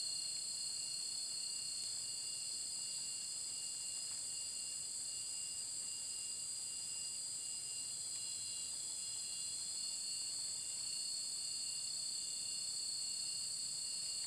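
Dry leaves crunch underfoot as a person walks.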